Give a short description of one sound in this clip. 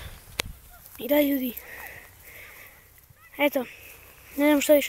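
A boy speaks close to the microphone in short bursts.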